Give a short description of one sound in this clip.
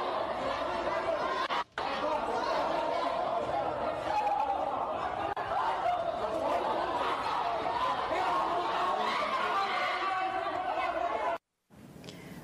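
A crowd of men and women shout and argue loudly in an echoing hall.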